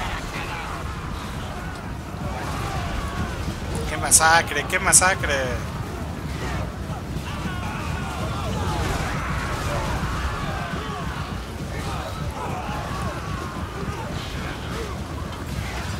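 Many soldiers' feet rumble across the ground in a charge.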